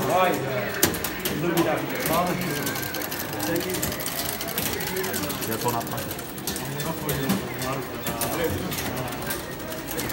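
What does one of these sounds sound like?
An arcade game plays loud electronic music.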